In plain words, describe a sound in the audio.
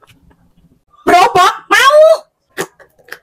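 A young woman speaks briefly with animation, close by.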